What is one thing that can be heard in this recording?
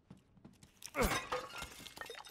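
A gunshot rings out sharply.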